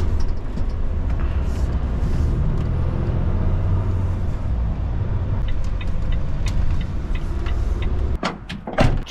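A truck engine rumbles steadily from inside the cab.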